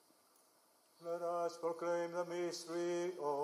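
An elderly man chants through a microphone.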